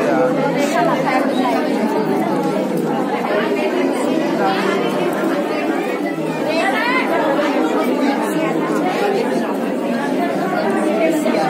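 A crowd of men and women chatter loudly nearby in an echoing space.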